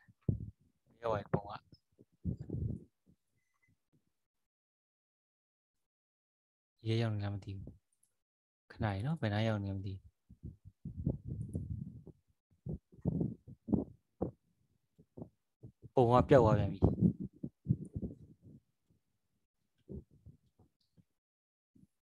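A young man speaks calmly into a microphone, in bursts with pauses.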